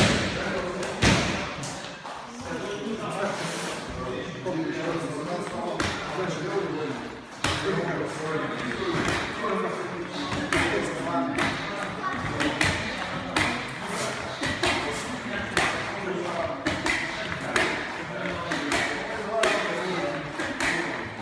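Fists thud against padded mitts in quick bursts.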